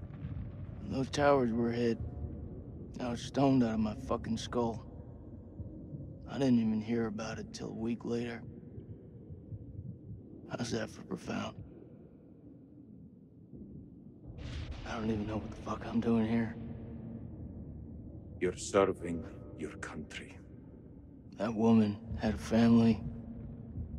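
A young man speaks in a low, calm voice nearby.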